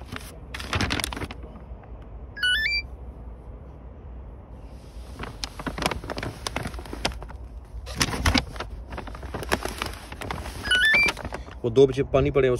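Paper bags rustle and crinkle.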